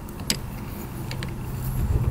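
A wrench turns a bolt with light metallic clicks.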